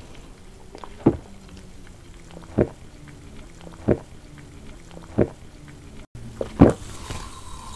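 A young woman gulps water loudly, close to a microphone.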